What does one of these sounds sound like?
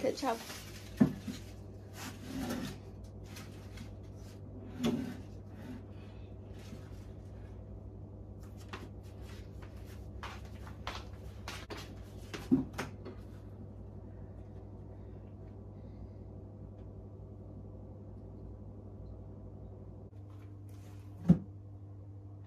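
Small objects knock and clatter on a wooden bedside table.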